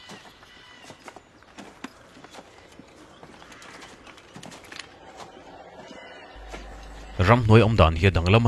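Footsteps crunch on grass and dry leaves.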